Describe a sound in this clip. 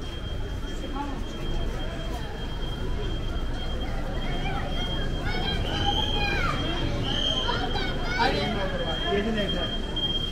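A busy street crowd murmurs outdoors.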